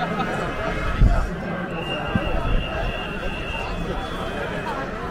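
A large outdoor crowd murmurs and chatters.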